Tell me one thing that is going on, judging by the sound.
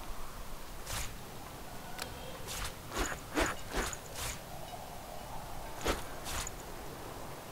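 Short game interface clicks sound as items are moved.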